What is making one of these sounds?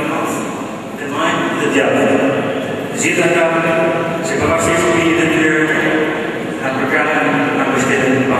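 A middle-aged man speaks steadily into a microphone in a large echoing hall.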